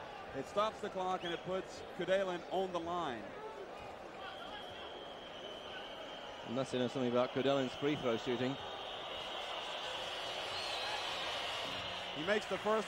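A large crowd murmurs and cheers in an echoing arena.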